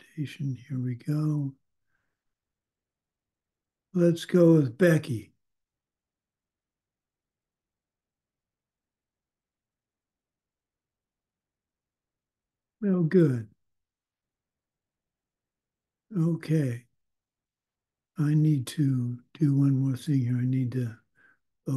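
An older man speaks calmly in short bursts over an online call.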